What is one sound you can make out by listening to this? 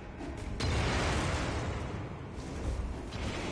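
A burst of fire roars.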